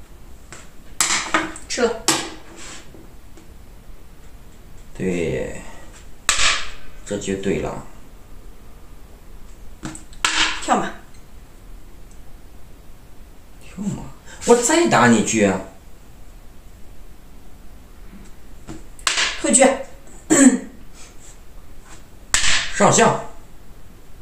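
Plastic game pieces click and tap on a wooden board.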